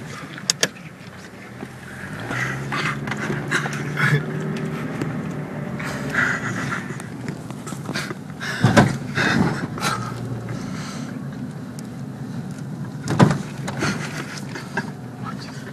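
A car engine hums and revs while driving.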